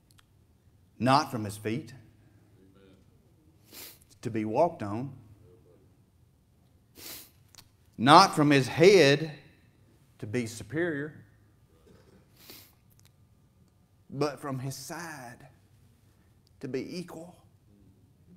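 A middle-aged man speaks through a microphone in bursts, with pauses, in a reverberant hall.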